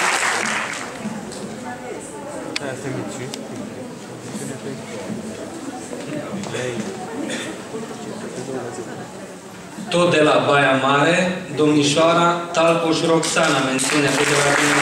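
An older man announces through a microphone and loudspeakers in a large hall.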